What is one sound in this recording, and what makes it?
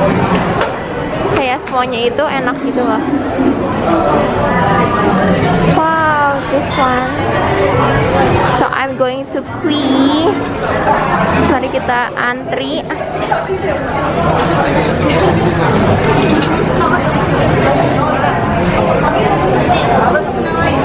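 A crowd of men and women chatters all around, indoors.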